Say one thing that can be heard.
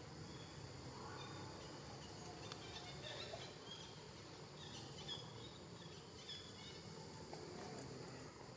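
Young monkeys squeak and chatter close by.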